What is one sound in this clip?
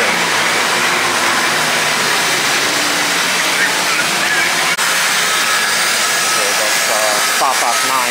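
A bus engine idles loudly close by.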